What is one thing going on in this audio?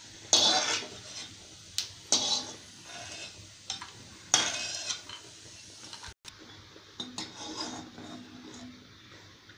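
A metal ladle scrapes against a metal pan.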